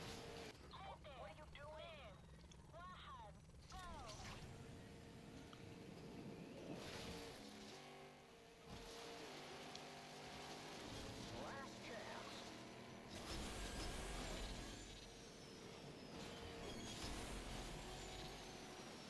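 A racing car engine roars and revs.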